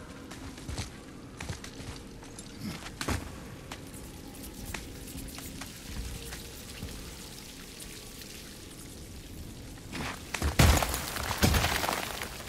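Armour and gear clatter as a warrior climbs a rock wall.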